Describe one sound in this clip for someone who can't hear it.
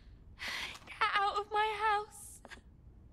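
A woman shouts angrily.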